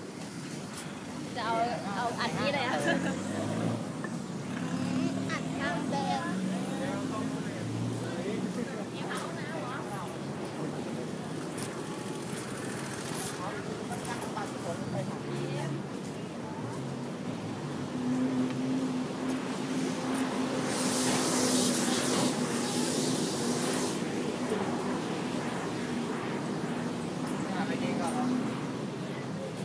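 Traffic rumbles steadily outdoors.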